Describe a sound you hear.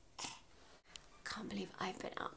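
A young woman talks playfully up close.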